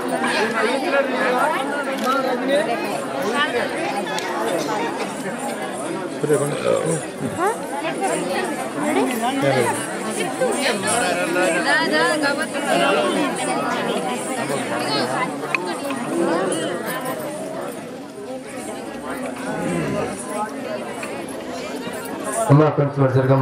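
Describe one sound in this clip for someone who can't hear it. A crowd of women and children chatter all around, close by.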